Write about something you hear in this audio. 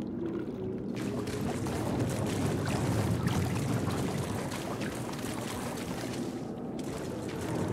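Footsteps splash quickly across a wet floor in a large echoing hall.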